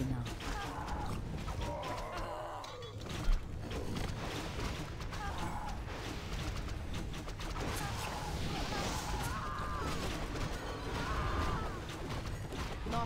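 Game battle sounds clash and crackle with spell effects.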